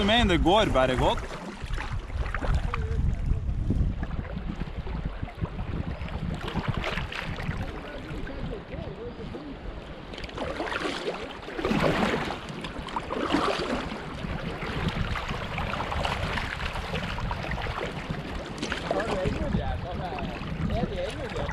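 A river rushes and splashes close by.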